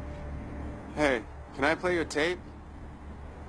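A young man asks a short question.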